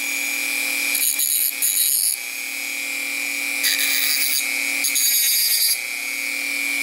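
A spinning cutting disc grinds against thin metal with a harsh hiss.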